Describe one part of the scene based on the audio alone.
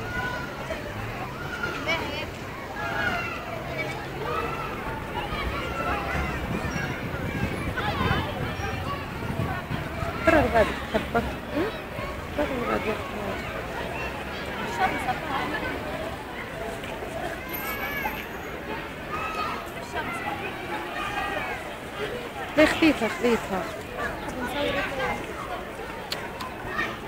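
A crowd of people chatters outdoors.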